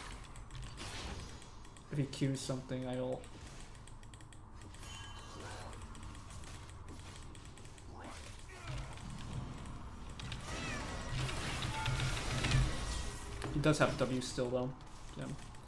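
Game spells and sword hits crash and whoosh during a fight.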